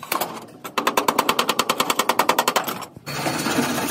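A hammer taps rapidly on metal.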